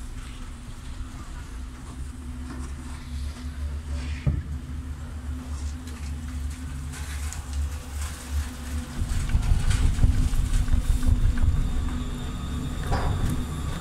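Chairlift machinery hums and rumbles steadily.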